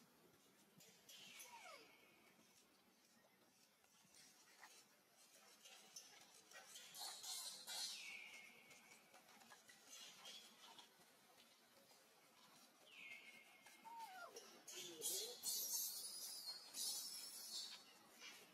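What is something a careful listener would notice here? A baby monkey squeals with high, shrill cries now and then.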